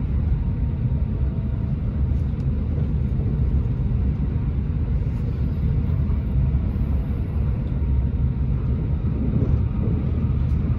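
A train rumbles steadily, with a low hum in the carriage.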